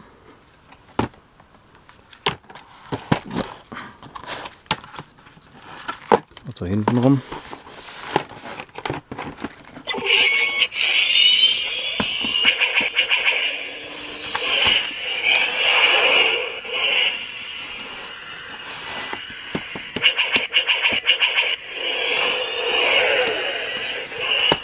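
Hands handle a cardboard box with scrapes and taps.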